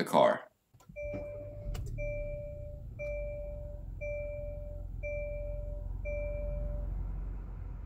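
A car chime beeps in a steady repeating pattern.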